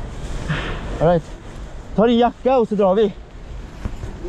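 A man speaks loudly close to the microphone.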